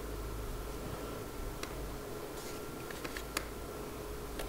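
A sheet of paper rustles as it is set down.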